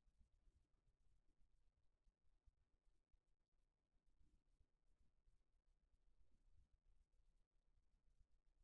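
A man speaks quietly into a microphone.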